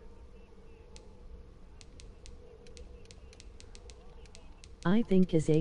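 Soft menu clicks tick quickly one after another.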